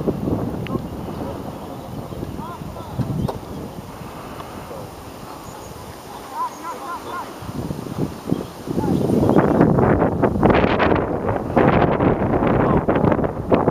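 Players call out to each other far off across an open field.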